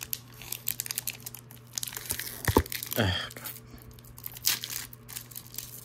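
A foil card pack is torn open.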